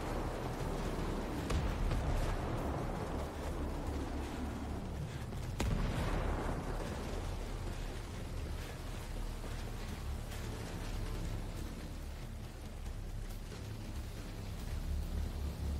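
Footsteps shuffle softly over leaves and ground.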